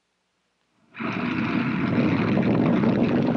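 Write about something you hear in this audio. A rocket engine ignites with a loud burst.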